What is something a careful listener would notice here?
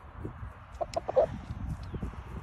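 A rooster clucks softly close by.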